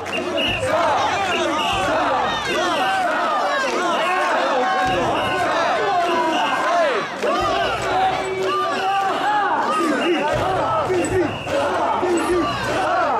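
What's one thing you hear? A large crowd of men chants and shouts loudly in rhythm, close by.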